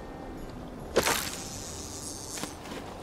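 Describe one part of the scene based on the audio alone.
A lure splashes into water.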